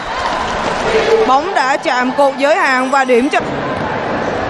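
Young women shout and cheer together close by.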